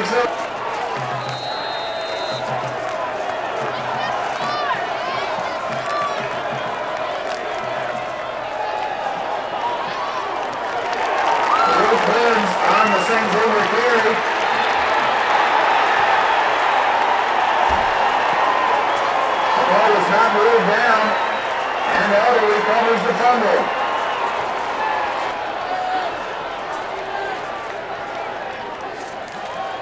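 A large crowd cheers and roars outdoors, swelling loudly mid-play.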